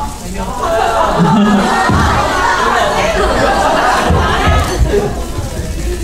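A crowd of young women screams and cheers.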